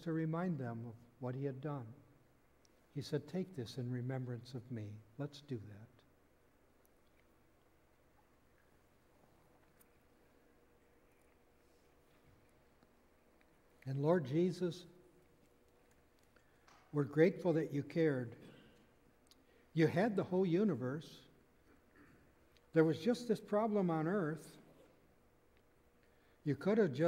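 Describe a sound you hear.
An elderly man speaks calmly through a microphone in a large room, pausing between phrases.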